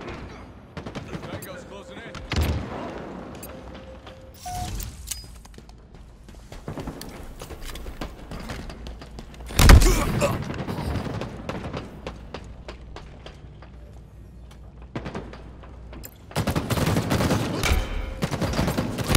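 Gunshots and explosions sound from a video game.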